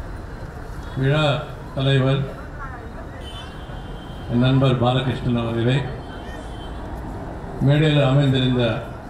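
A middle-aged man speaks loudly and with animation into a microphone over loudspeakers outdoors.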